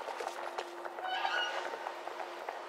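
A metal valve lever squeaks as it turns.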